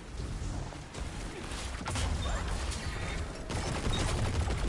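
Deep rumbling explosions boom in a game.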